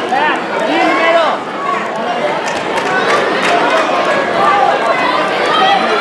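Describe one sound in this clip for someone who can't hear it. A large crowd shouts and cheers in a big echoing hall.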